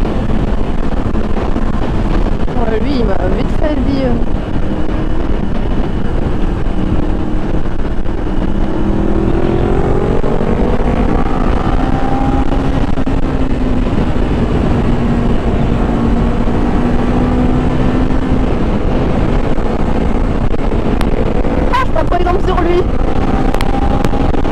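Wind roars loudly past a moving motorcycle.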